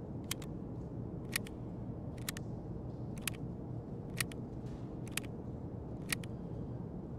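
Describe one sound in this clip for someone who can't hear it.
Short sharp clicks sound several times.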